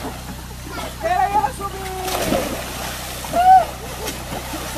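A boy dives into water with a splash.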